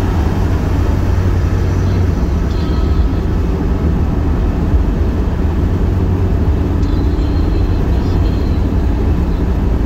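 Tyres roar on asphalt inside a car moving at highway speed.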